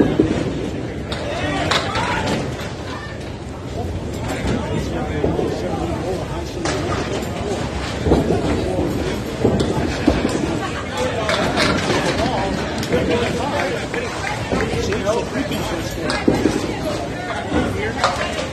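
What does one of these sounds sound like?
Pins crash and clatter.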